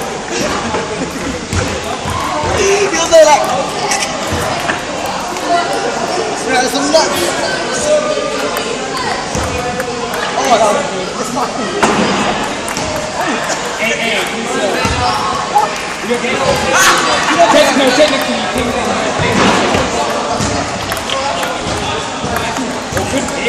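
A table tennis ball clacks on paddles in a large echoing hall.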